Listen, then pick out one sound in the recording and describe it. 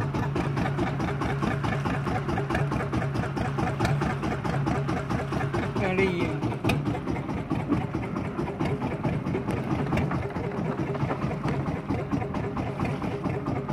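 A boat engine drones steadily and loudly.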